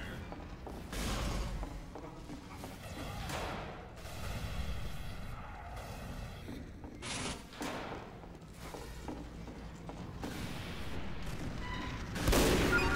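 A rifle fires with a loud crack.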